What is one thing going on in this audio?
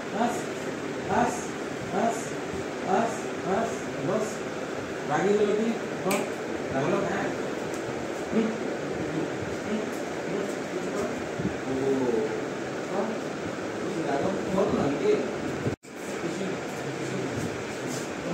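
A man talks with animation nearby.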